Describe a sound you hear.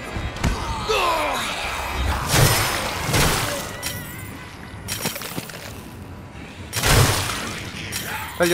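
Blades slash and hit zombies with heavy impacts.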